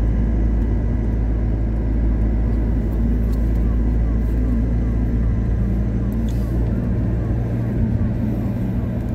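A vehicle drives steadily along a road, its engine rumbling inside the cabin.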